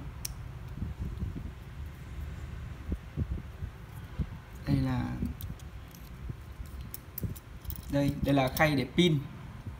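Small plastic parts click and tap as they are handled up close.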